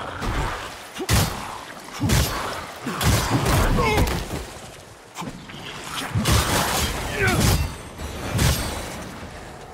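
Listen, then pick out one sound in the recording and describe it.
Heavy blows and sword strikes thud and clash in a fight.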